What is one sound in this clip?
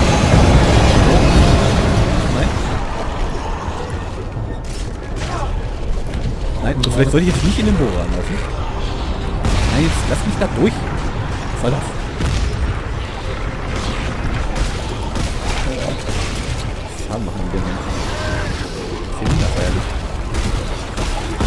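Gunfire cracks and sparks burst against metal.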